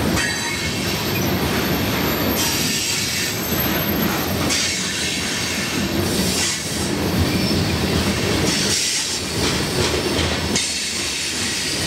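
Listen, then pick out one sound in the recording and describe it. Freight train cars rumble and clatter past close by.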